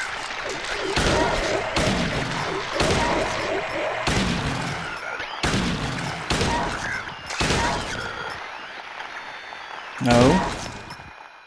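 A gun fires loudly several times, with echoing bangs.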